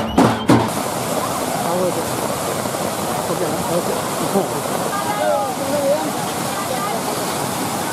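Water rushes steadily over a weir.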